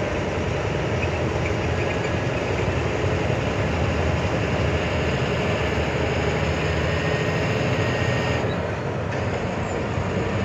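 A vehicle's engine hums steadily while driving.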